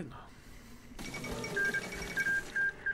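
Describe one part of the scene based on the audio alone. A short chime sounds as a message pops up.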